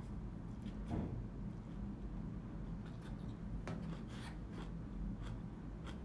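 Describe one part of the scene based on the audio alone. A young woman slurps and chews food up close.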